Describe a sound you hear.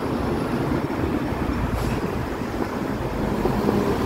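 A double-decker bus drives past with a deep engine rumble.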